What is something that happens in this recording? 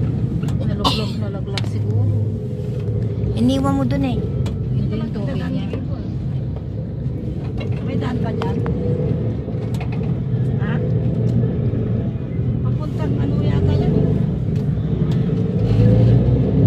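A vehicle engine hums steadily while driving along a road.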